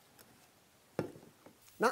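A glass knocks on a table.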